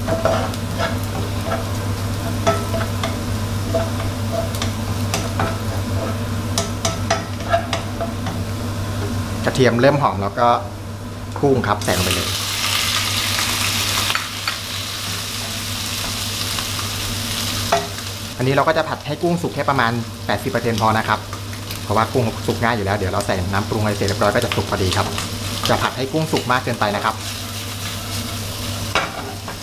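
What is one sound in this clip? A wooden spatula scrapes and taps on a nonstick pan.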